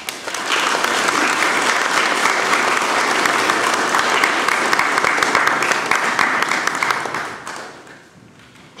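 An audience applauds loudly in an echoing hall, then the clapping fades.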